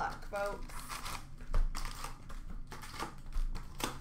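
A foil card pack wrapper crinkles and tears as hands rip it open.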